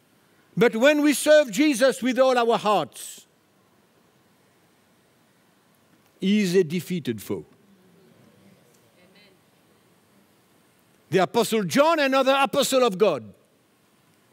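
An older man speaks with animation through a headset microphone, in bursts with pauses.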